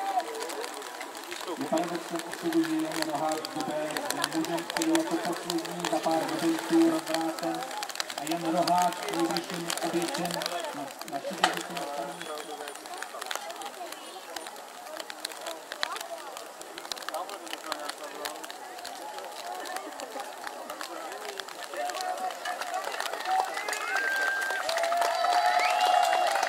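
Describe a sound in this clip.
A crowd of men and women chatter outdoors at a distance.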